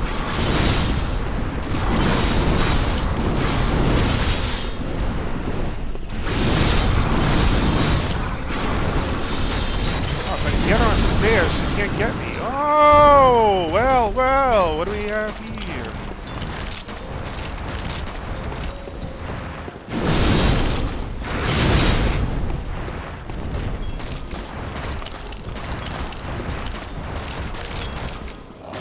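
Blades swish and strike in a fight.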